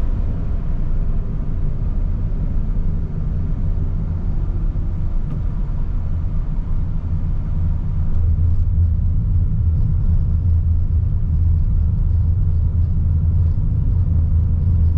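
Tyres rumble on the road as the car drives along.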